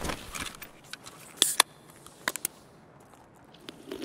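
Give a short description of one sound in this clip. A drink can pops open with a sharp hiss.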